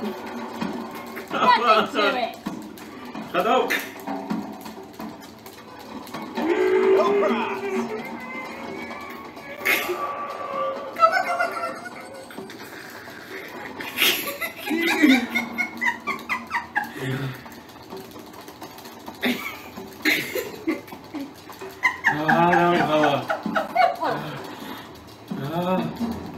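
A woman laughs close to a microphone.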